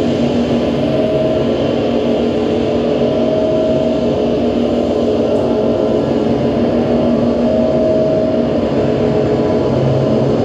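A drummer plays a drum kit with cymbals in loose, improvised patterns.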